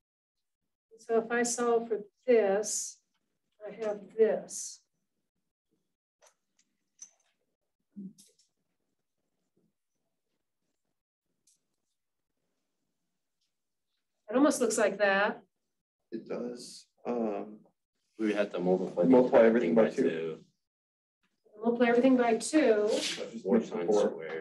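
A woman speaks calmly, as if lecturing, a little distant in a room.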